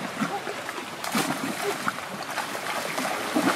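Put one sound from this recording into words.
A boy jumps down and splashes into shallow water.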